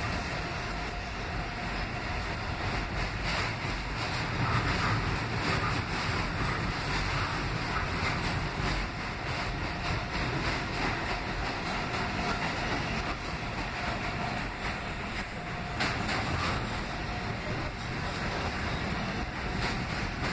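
Metal clanks and squeals as the train car sways.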